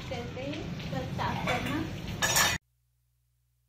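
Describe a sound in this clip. Steel pots clatter as a young woman handles them.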